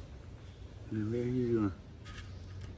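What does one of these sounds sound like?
A man speaks briefly and calmly close by.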